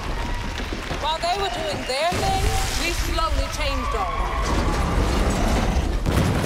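A young woman speaks into a microphone with passion.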